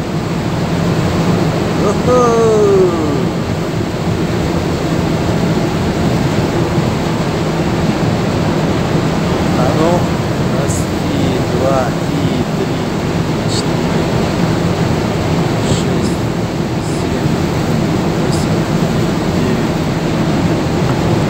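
The ship's engine rumbles low and steady.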